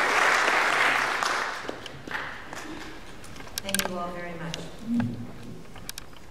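A woman speaks into a microphone in a large echoing hall.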